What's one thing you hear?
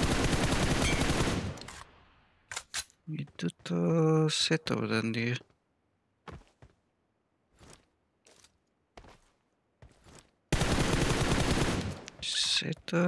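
A sniper rifle fires loudly in a video game.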